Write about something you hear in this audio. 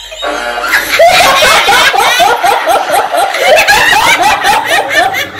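A woman laughs loudly and repeatedly close by.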